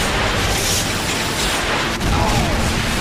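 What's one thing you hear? A missile roars as it streaks downward.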